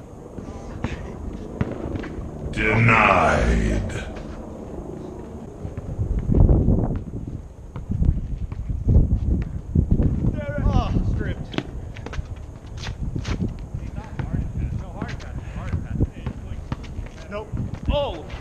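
A basketball bounces on hard pavement.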